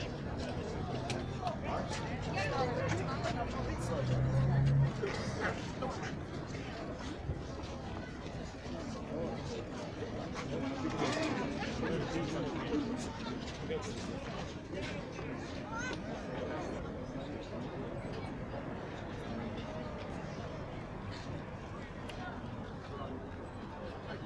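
A crowd murmurs and talks nearby outdoors.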